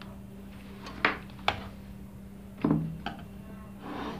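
A small plastic meter knocks and clatters as it is picked up and set down on a hard surface.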